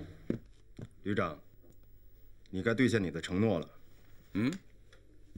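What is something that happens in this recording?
A young man speaks firmly and formally.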